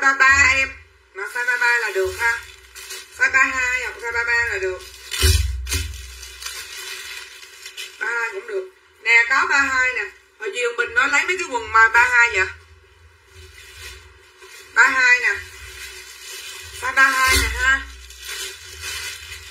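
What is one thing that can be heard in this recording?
A middle-aged woman talks with animation close to the microphone.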